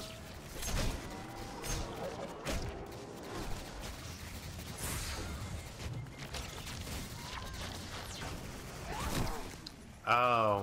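Gunfire and energy blasts crackle and boom in a video game.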